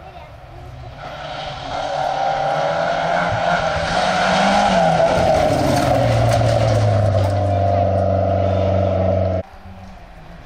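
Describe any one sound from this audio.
A rally car engine roars loudly as it approaches and passes close by.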